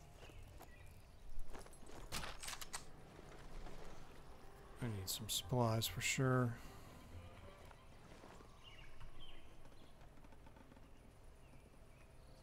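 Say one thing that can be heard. A man crawls over creaking wooden planks.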